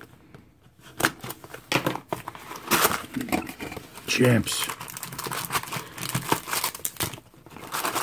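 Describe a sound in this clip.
A cardboard box flap is pulled open.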